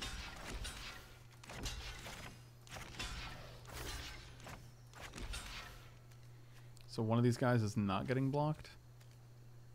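A man talks through a close microphone with animation.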